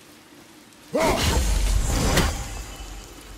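A glowing seal bursts apart with a loud crackling blast.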